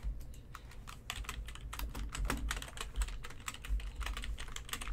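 Keys clatter quickly on a keyboard.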